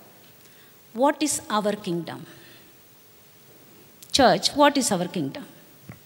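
A woman speaks into a microphone with animation, in short phrases with pauses.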